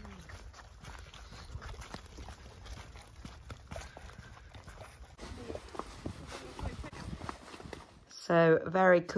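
Horses' hooves plod on a muddy track outdoors.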